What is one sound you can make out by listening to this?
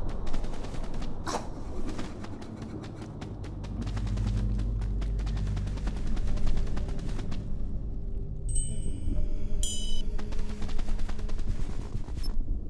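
Footsteps patter quickly over rocky ground.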